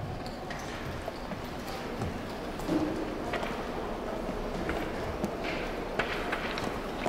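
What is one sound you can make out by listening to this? Footsteps click across a hard floor in a large echoing hall.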